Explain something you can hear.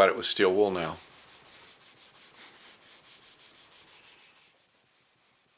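A sanding block rubs back and forth on wood in a quick rhythm.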